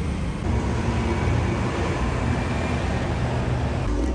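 A city bus drives past.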